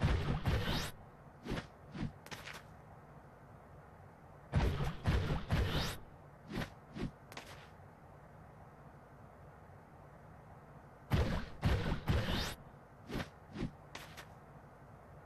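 Heavy thumps and whooshes burst out in short flurries as a bulky figure rolls and lunges.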